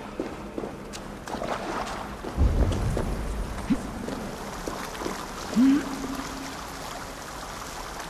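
Water splashes down a small waterfall.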